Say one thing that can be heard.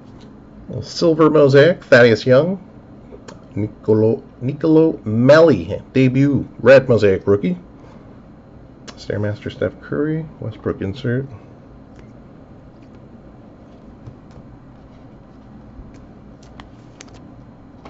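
Trading cards slide and rustle against each other in hands.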